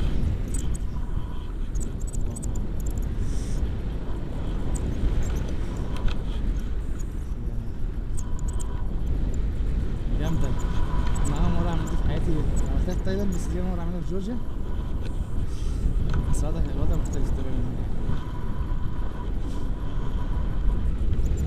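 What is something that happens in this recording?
Wind rushes loudly past a microphone throughout.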